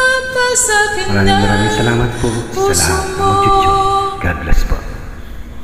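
A woman sings into a phone microphone.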